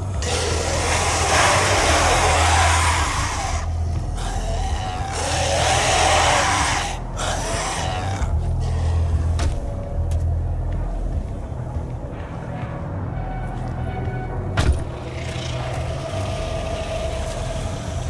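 A deep mechanical hum drones steadily throughout.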